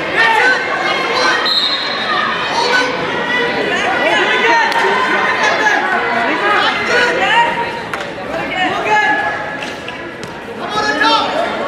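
Several men shout encouragement from nearby in a large echoing hall.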